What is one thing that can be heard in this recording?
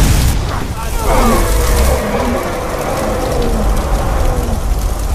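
A dragon roars loudly overhead.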